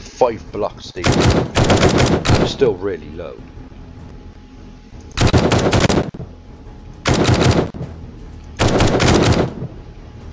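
Bursts of rapid gunfire ring out loudly.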